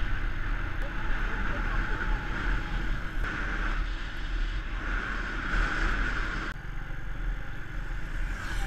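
Wind rushes over the microphone outdoors.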